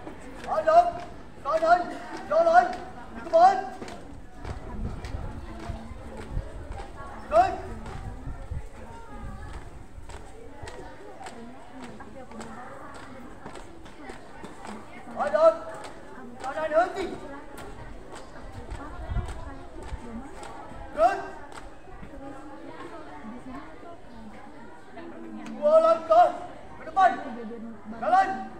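Marching feet stamp on hard ground in rhythm.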